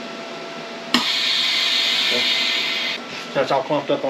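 Air hisses loudly out of a vacuum machine.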